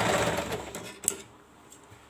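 Scissors snip once.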